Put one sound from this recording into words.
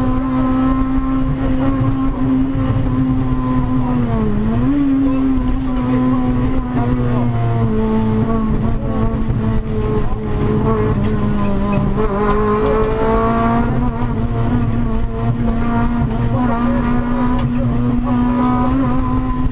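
A car engine roars loudly at high revs, its pitch dipping and rising with gear changes.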